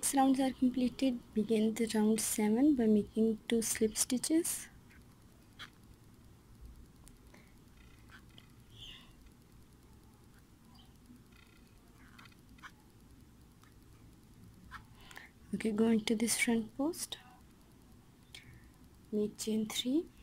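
A crochet hook softly pulls through yarn.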